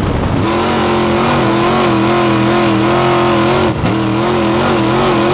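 Tyres skid on loose dirt.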